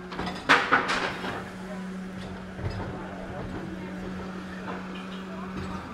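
A garbage truck engine rumbles steadily nearby.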